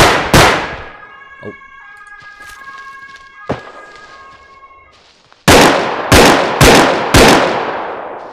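A rifle fires several loud shots that ring out and echo.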